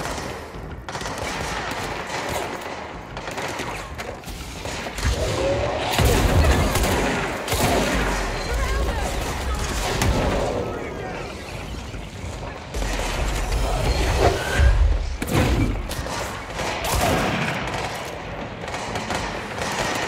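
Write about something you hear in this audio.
Gunshots crack and echo in a game.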